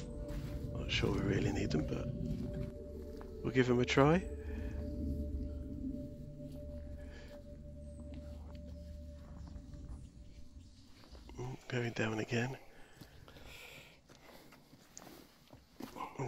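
Footsteps crunch through dry fallen leaves.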